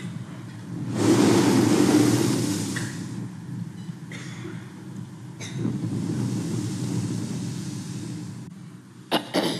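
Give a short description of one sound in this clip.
An elderly woman speaks slowly and calmly into a microphone.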